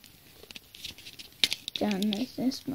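Fingers rustle and bump close against a microphone.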